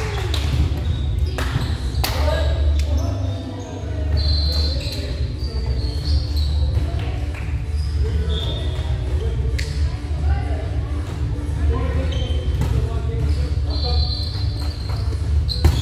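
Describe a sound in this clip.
Young men and women call out and chatter in a large echoing hall.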